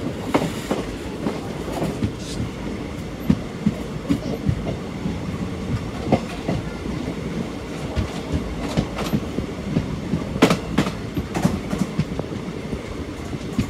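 A train rumbles and clatters steadily along the tracks.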